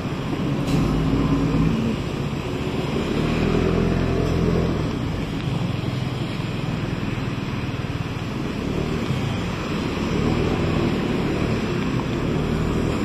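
A scooter engine hums steadily up close.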